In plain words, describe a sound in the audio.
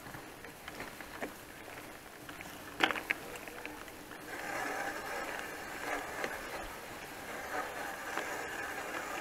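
A bicycle frame rattles and knocks over bumps.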